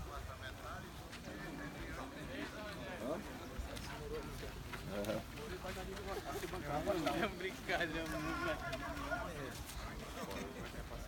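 Young men talk and chatter nearby outdoors.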